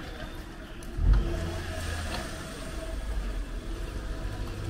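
A motor scooter approaches and passes close by.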